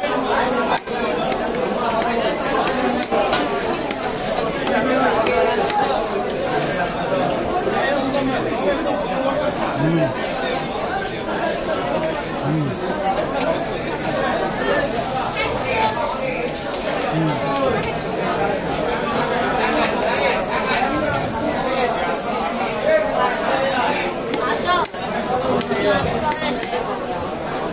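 A heavy knife chops through fish onto a wooden block with dull thuds.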